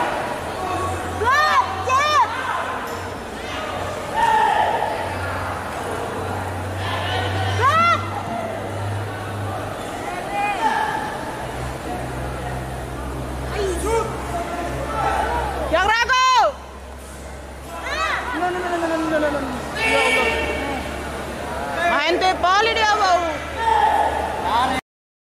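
A crowd murmurs and shouts loudly in a large echoing hall.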